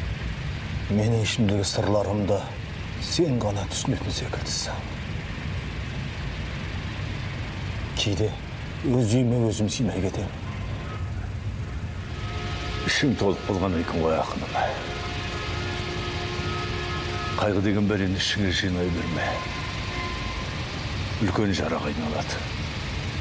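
A middle-aged man speaks calmly and seriously up close.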